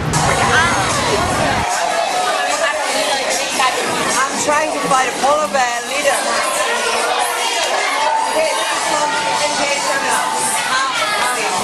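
Children chatter and shout in the background.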